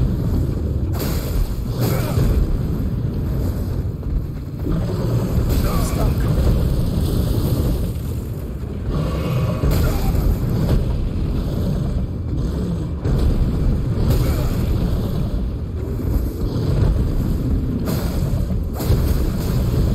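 Heavy blows thud and crash against the ground.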